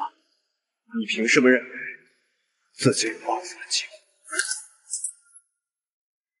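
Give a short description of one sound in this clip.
A man speaks calmly and coldly.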